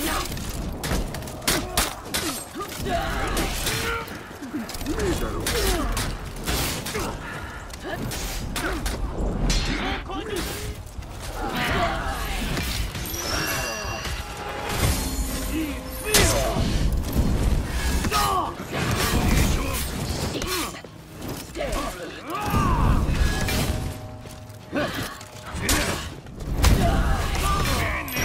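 Swords clash and clang in a fight.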